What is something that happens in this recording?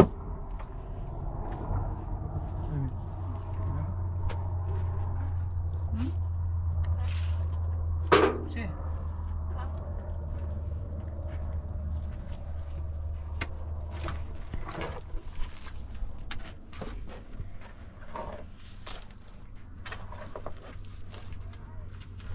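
Stones knock and scrape as they are set on a wall.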